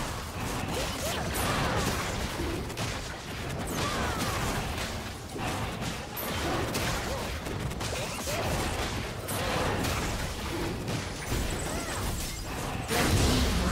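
Magic blasts and weapon strikes crackle and crash in quick bursts.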